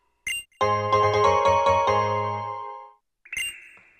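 A short cheerful fanfare plays.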